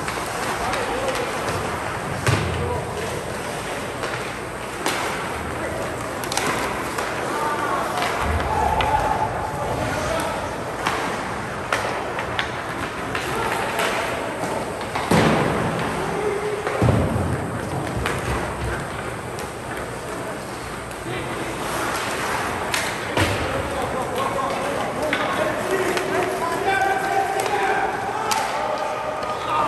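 Spectators' voices murmur and call out in an echoing rink.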